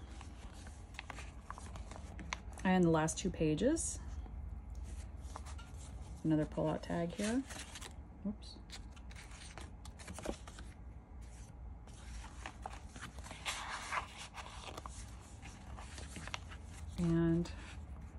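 Paper pages rustle and flap as they are turned and unfolded.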